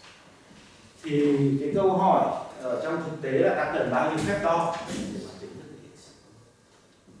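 A man lectures loudly and clearly to a room.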